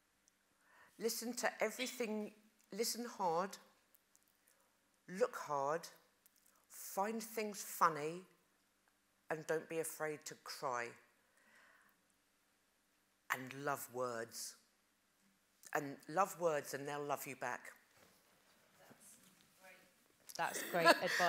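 A woman speaks with animation into a microphone, in short bursts with pauses.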